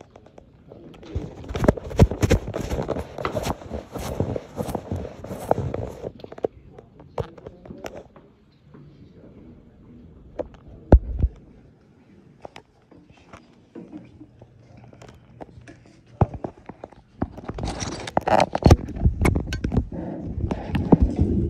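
Rustling and bumping noises come from a phone being moved about roughly.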